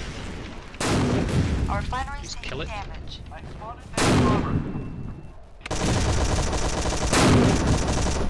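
A mortar fires with a loud, booming thump several times.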